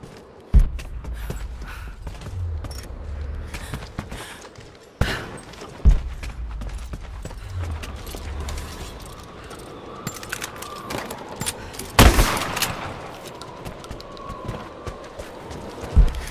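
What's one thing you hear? Footsteps crunch on snow and creak on wooden boards.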